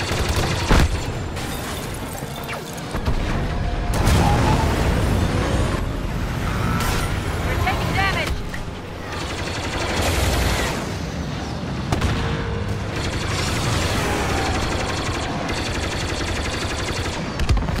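Laser blasts fire in quick bursts.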